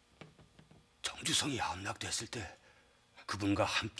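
Another middle-aged man speaks in a low, calm voice, close by.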